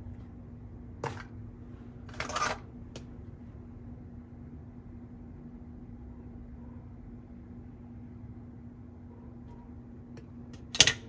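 Small plastic toys knock and rattle as they are picked up and set down.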